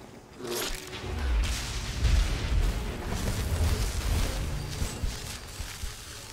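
Magic spells crackle and whoosh.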